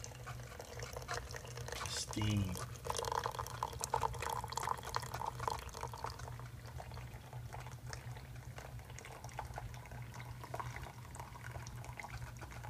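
Coffee pours and splashes into a mug.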